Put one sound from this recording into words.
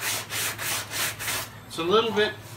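Sandpaper rasps back and forth over a car body in quick strokes.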